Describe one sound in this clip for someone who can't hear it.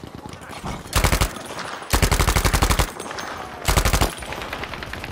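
A submachine gun fires in bursts.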